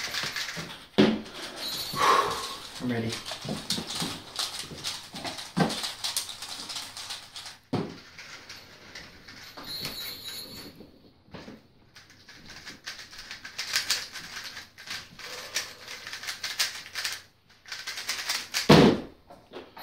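Plastic puzzle cubes click and rattle as they are turned quickly.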